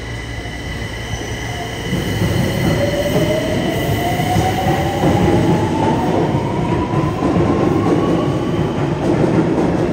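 A subway train pulls out of an underground station, its motor whining higher as it speeds up.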